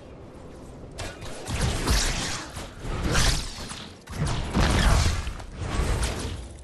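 Gunfire bangs out in loud, rapid bursts.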